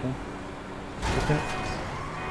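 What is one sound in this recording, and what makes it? A car crashes into another vehicle with a loud bang.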